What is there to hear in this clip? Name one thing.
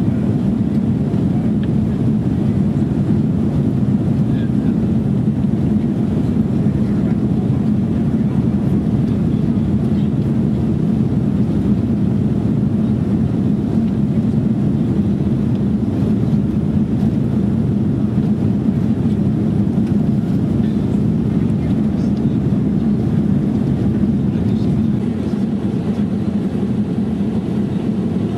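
Jet engines roar steadily inside an airliner cabin in flight.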